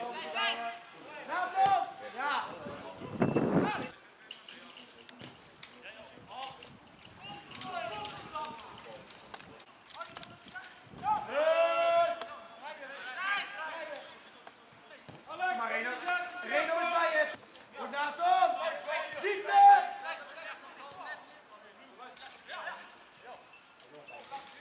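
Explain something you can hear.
Young football players shout and call out to each other across an outdoor pitch.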